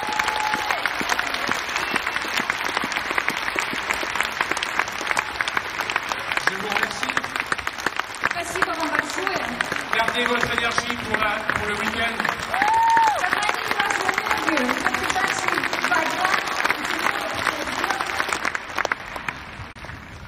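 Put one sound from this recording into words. A large audience applauds in an echoing hall.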